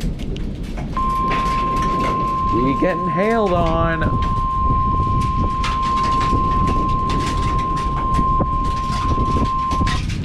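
A weather radio sounds a long, steady, high alarm tone.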